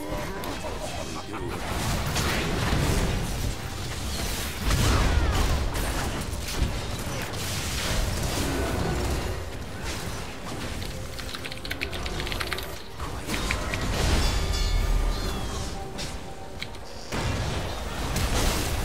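Game sound effects of spells and attacks burst and clash.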